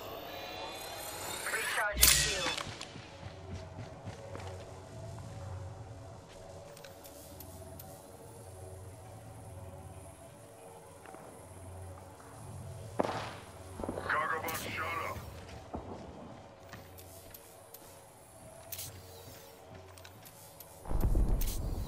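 Footsteps thud quickly on a hard metal floor.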